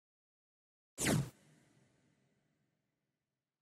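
A game menu plays a short descending whoosh that rings out and fades.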